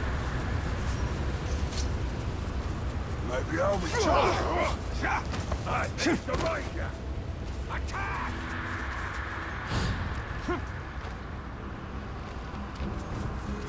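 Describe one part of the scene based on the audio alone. Footsteps run and rustle through grass.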